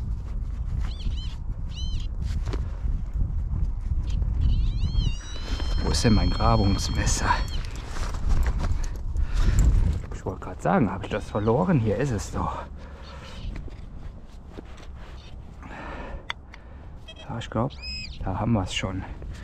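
A metal detector beeps in high tones.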